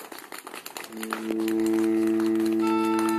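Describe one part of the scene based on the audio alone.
A saxophone ensemble plays a sustained chord.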